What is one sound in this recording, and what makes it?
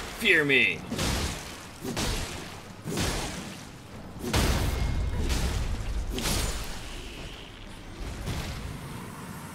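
A giant creature crashes and thrashes about.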